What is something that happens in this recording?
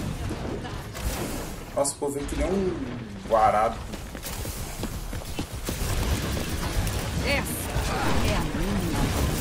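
Video game weapons fire in rapid bursts.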